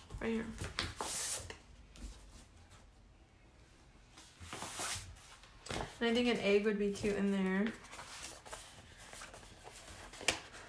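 Paper sheets rustle and slide as they are handled.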